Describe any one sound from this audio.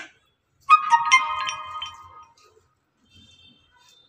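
Food is tipped from a small bowl into a metal bowl.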